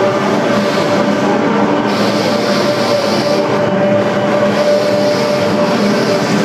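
A guitar is strummed loudly.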